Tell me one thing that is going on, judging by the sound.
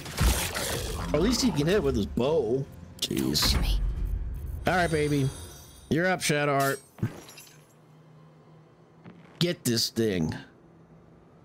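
A middle-aged man talks with animation into a microphone, close by.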